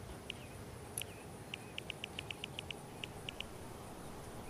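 Short soft menu ticks click in quick succession.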